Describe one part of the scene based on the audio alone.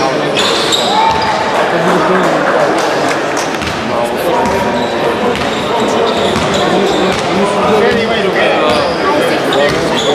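Sneakers squeak on the court as players run.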